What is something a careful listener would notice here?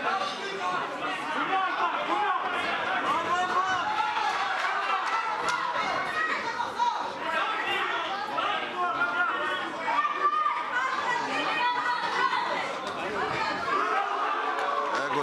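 A crowd of spectators talks and shouts in an echoing hall.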